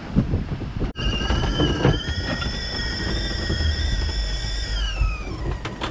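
A kettle whistles steadily, then its pitch sinks and fades.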